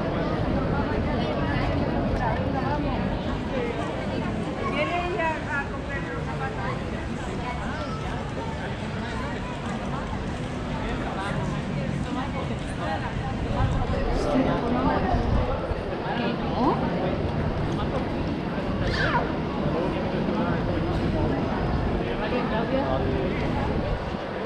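A crowd of people chatters and murmurs nearby, outdoors in a busy street.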